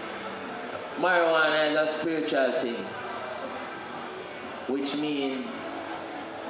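A young man sings into a microphone, heard through loudspeakers in a room.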